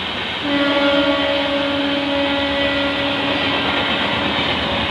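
An electric locomotive sounds its horn.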